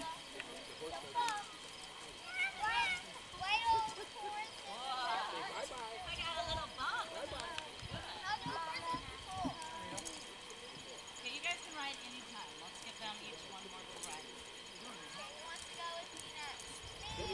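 Young girls talk and chatter excitedly nearby, outdoors.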